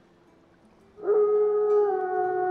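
A wolf howls long and loud.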